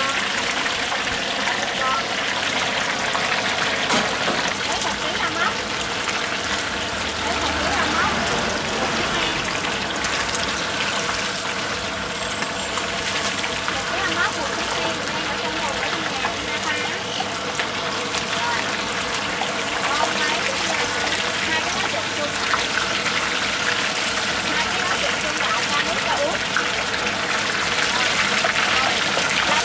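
Hot oil sizzles and crackles loudly as fish deep-fries.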